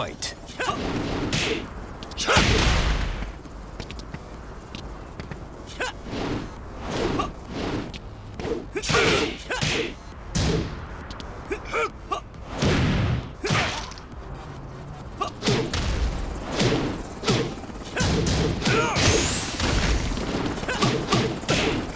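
Punches and kicks land with sharp, heavy thuds again and again.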